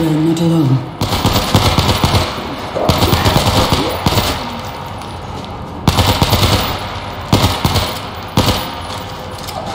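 Rapid rifle fire rings out in bursts through a tunnel.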